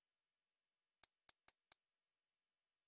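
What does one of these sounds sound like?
Game menu clicks tick four times in quick succession.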